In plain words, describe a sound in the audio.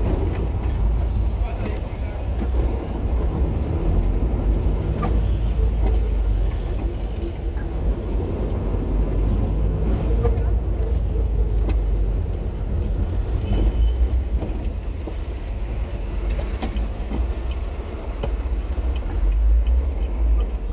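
A car engine hums and rumbles steadily from inside a vehicle driving slowly.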